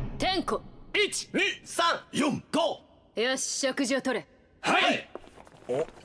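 Several young men shout out in turn, one after another.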